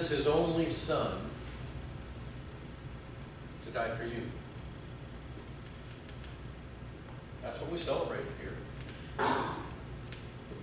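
A middle-aged man speaks slowly in short phrases, with long pauses.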